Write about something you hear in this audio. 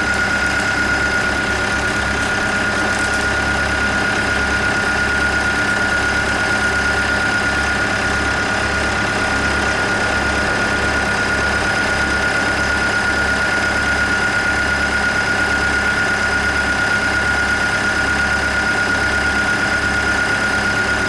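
An excavator's diesel engine runs steadily close by.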